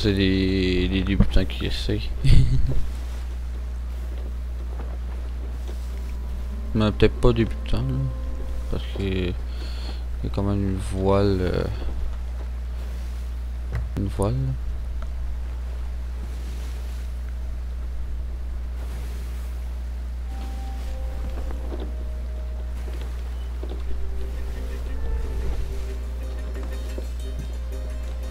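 Wind blows steadily over the open sea.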